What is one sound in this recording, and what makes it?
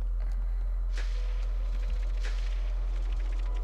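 Paper confetti bursts with a rustling pop.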